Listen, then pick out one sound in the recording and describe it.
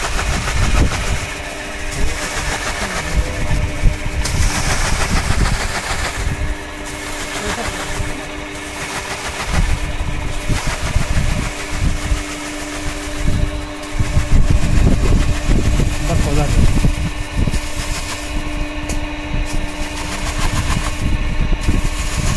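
A machine hums and whirs steadily close by.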